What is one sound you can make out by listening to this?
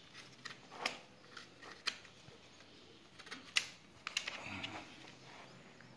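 A plastic laptop knocks and taps as hands handle it.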